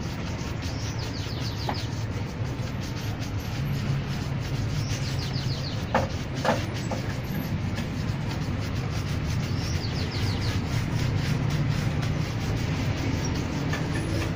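A shoe brush scrubs briskly back and forth over leather.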